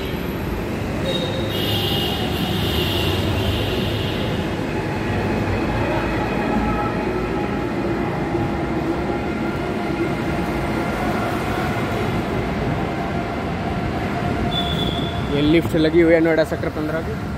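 Car engines rumble steadily.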